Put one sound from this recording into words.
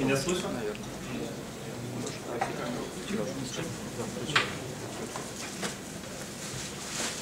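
A young man speaks calmly through a microphone in an echoing hall.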